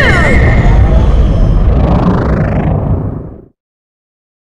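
A vehicle's engine roars loudly, then fades away.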